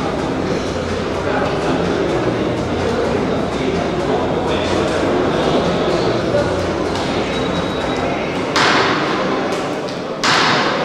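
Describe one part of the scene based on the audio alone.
A man talks to a boxer nearby.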